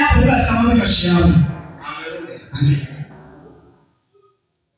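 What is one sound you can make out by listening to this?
A man speaks loudly through a microphone in an echoing hall.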